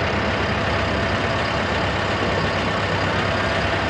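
A large machine's diesel engine rumbles steadily nearby.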